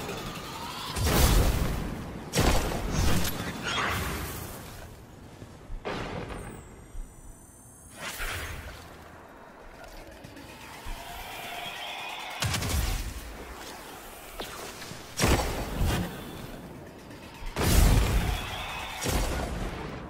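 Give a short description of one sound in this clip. Explosions burst and rumble in a game.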